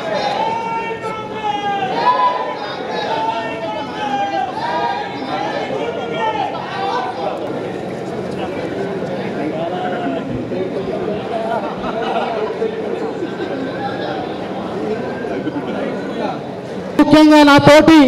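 Several men talk over one another close by.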